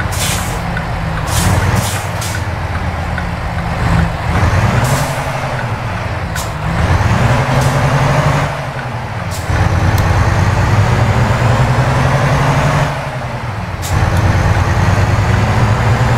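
A truck engine rumbles steadily and rises and falls in pitch as it shifts gears.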